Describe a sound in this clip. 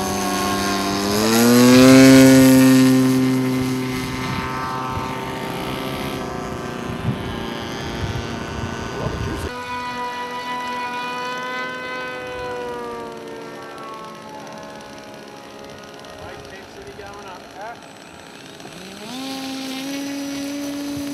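A small model aircraft engine revs up sharply in pitch.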